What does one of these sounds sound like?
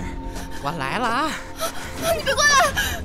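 A man speaks with glee.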